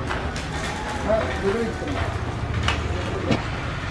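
A large stone tile knocks against cardboard boxes.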